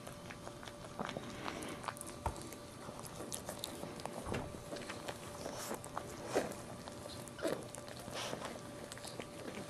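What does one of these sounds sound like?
A newborn puppy squeaks and whimpers softly.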